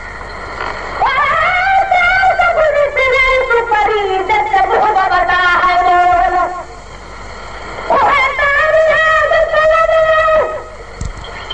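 A man chants a melodic recitation through a microphone, in long sustained phrases.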